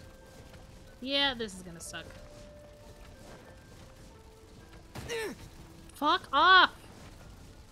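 A young woman speaks briefly into a close microphone, in short animated exclamations.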